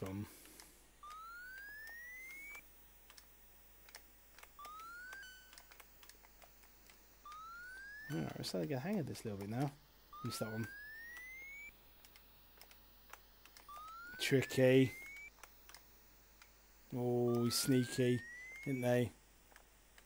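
Video game effects play short rising whistling tones.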